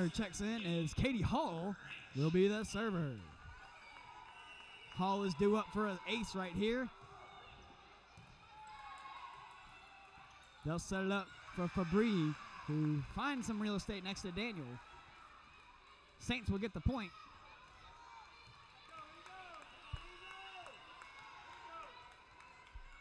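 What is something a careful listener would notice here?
A volleyball is struck with sharp slaps in a large echoing gym.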